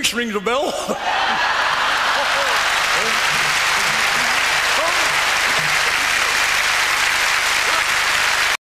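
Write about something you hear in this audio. A large audience applauds loudly in an echoing hall.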